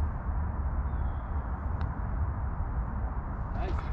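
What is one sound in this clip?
A golf putter taps a ball with a soft click.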